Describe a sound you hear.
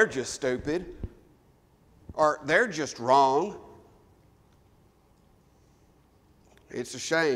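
A man speaks steadily into a microphone, pausing between phrases.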